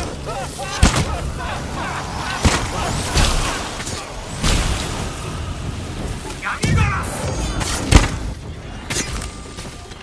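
Fire crackles and roars in bursts.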